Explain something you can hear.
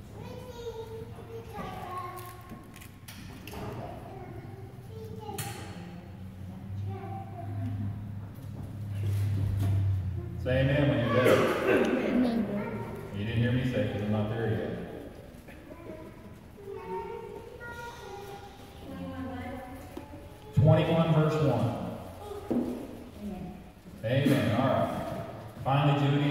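An elderly man speaks steadily into a microphone, heard through a loudspeaker in an echoing room.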